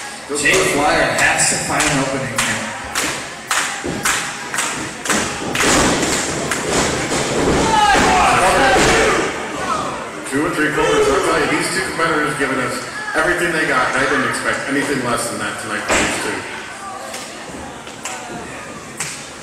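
Spectators shout and cheer in an echoing hall.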